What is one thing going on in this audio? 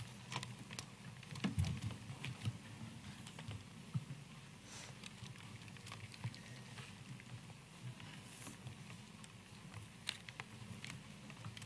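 Pens scratch and tap on writing boards.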